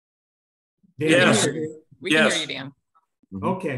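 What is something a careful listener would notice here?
A second elderly man speaks with animation over an online call.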